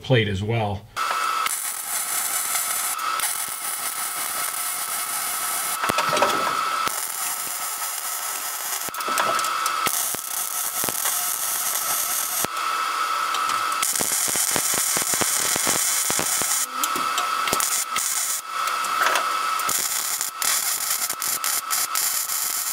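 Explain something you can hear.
An arc welder crackles and sizzles steadily in bursts.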